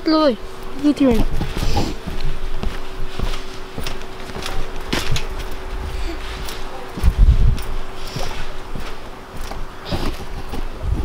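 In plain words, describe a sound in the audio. Feet thump and bounce on a trampoline.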